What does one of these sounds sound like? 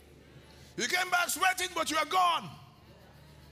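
A man speaks with animation through a microphone, echoing in a large hall.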